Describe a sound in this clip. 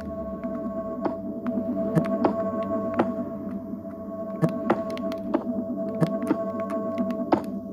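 Game blocks are placed and broken with short clicks and pops.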